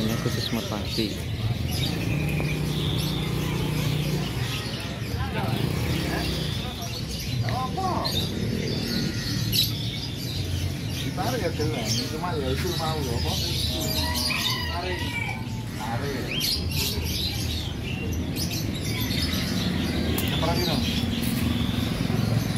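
Small birds chirp and twitter.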